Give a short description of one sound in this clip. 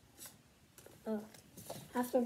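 A young girl speaks briefly and softly, close by.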